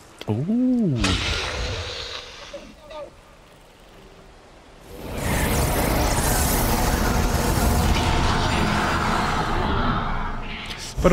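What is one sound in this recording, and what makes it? A loud magical whoosh roars and then fades away.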